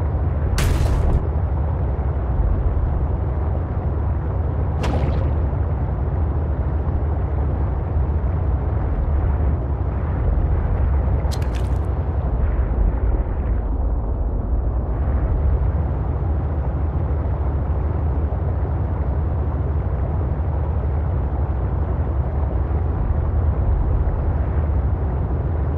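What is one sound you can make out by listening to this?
A submarine engine hums deeply and steadily underwater.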